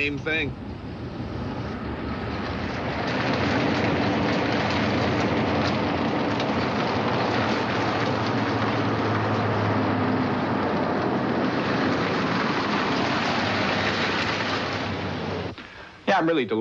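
A car engine roars as a car drives off.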